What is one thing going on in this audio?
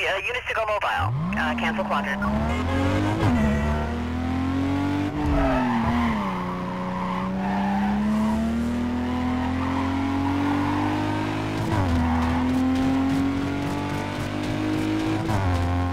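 A car engine revs hard and shifts through the gears.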